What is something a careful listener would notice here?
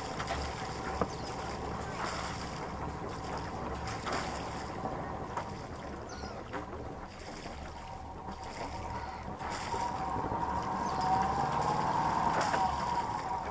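Footsteps and knocks thud on a boat's deck.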